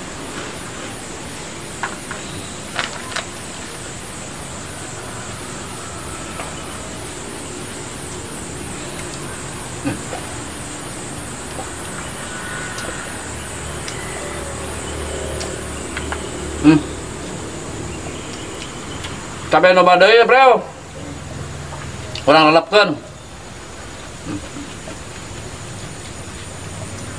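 A man eats, chewing and smacking his lips.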